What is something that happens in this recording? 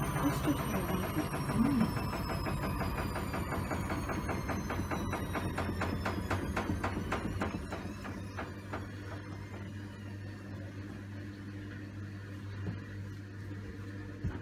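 Water sloshes and splashes inside a washing machine.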